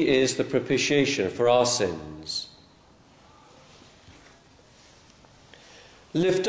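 An elderly man speaks calmly and clearly in a large echoing hall.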